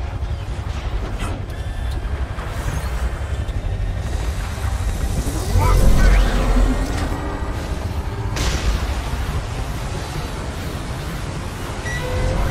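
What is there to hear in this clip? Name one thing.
A large aircraft's engines rumble and roar steadily.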